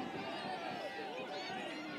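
A crowd of spectators chatters in the distance outdoors.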